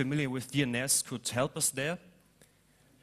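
A young man speaks through a microphone in a large echoing hall.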